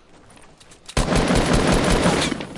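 Rapid gunshots ring out in quick bursts.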